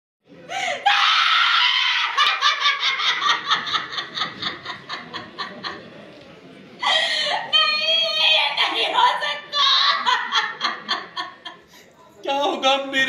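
A young woman wails and cries out loudly in grief.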